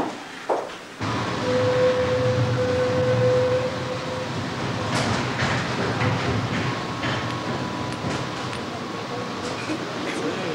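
A tram rumbles along steadily.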